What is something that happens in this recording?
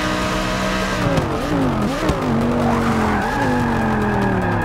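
A racing car engine drops and revs up again while braking for a corner.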